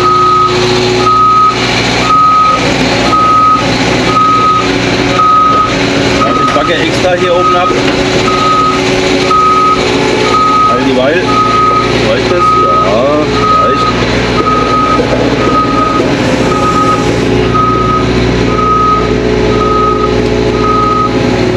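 A warning alarm beeps in a steady, even rhythm.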